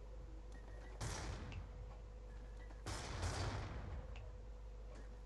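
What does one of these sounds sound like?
A stun grenade bursts with a hissing blast.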